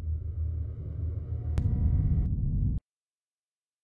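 Low, droning game menu music plays.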